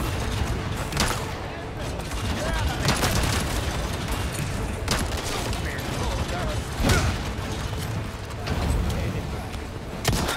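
A gun fires loud single shots.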